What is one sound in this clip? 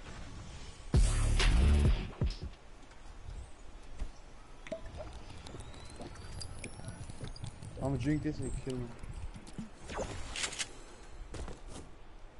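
A pickaxe chops at wooden planks again and again.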